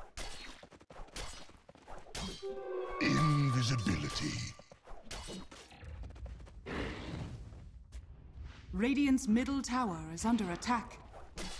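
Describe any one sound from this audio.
Sword strikes and spell effects clash in a fast fight.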